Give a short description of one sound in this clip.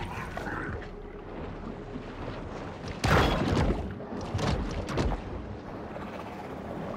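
Water murmurs with a low, muffled underwater rumble.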